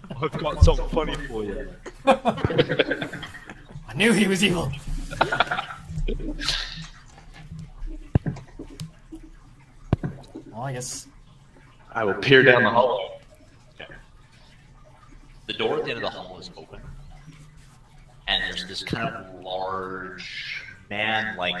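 A young man with a deeper voice talks with animation over an online call.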